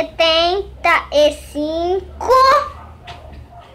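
A young child speaks in a high voice close by.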